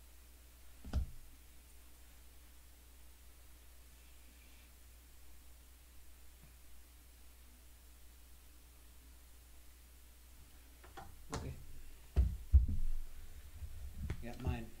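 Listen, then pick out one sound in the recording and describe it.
Plastic game pieces knock and clatter on a tabletop.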